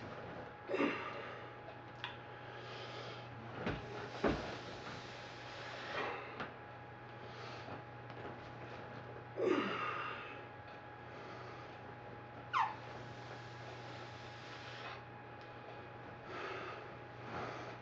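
A man breathes out hard and grunts with each lift, close by.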